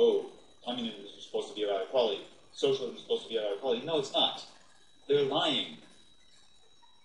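A young man talks with animation through a webcam microphone.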